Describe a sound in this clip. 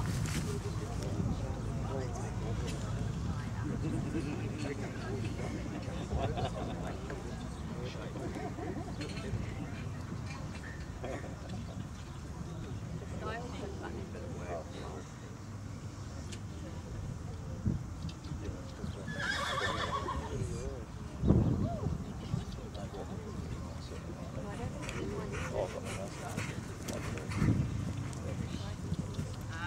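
A crowd murmurs in the distance.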